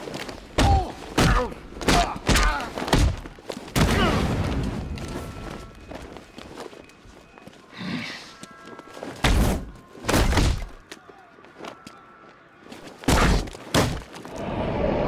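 Heavy punches land with hard thuds in a brawl.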